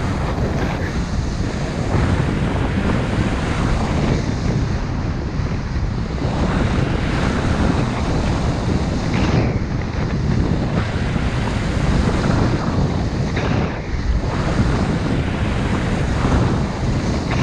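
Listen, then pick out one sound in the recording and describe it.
Skis carve and scrape over packed snow in sweeping turns.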